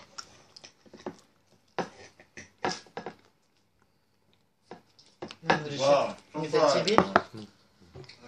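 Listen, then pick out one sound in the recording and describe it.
A man bites and chews crunchy food close to the microphone.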